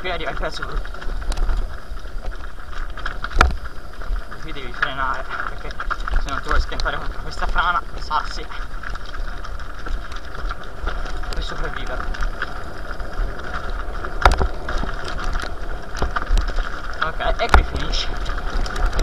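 Bicycle tyres crunch and rumble over loose stones.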